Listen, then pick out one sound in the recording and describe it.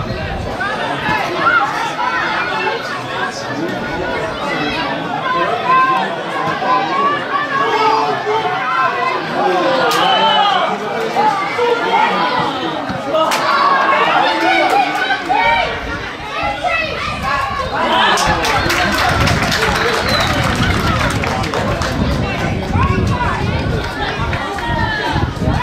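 A crowd of spectators chatters and calls out nearby.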